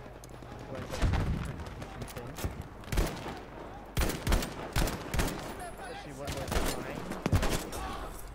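Gunshots crack repeatedly nearby.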